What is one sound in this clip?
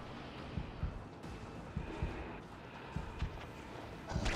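Heavy footsteps thud slowly on a hard floor.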